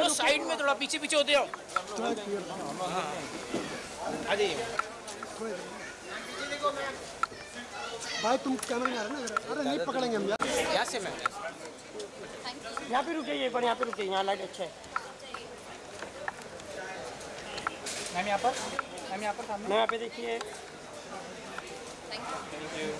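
Several men call out and talk loudly close by.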